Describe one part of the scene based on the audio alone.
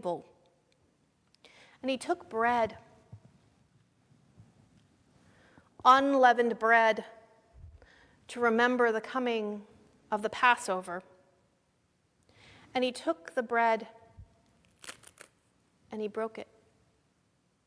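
A middle-aged woman speaks slowly and solemnly into a microphone, in a reverberant room.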